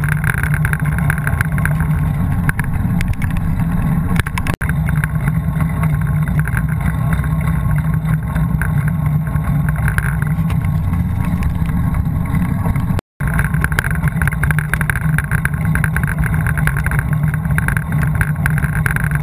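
Bicycle tyres hum on a rough road.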